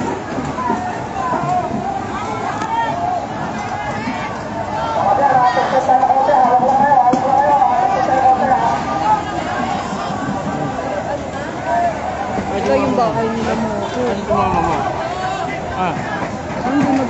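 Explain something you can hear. A crowd of men and women shouts and calls out excitedly nearby.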